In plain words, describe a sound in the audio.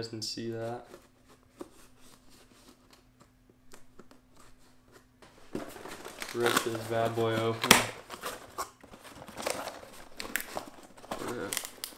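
Cardboard flaps rustle and scrape.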